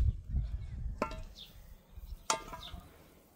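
A metal lid clanks.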